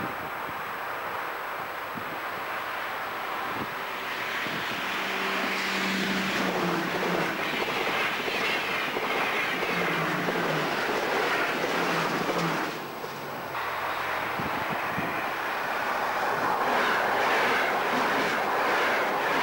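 A train rushes past close by, rumbling and clattering on the tracks.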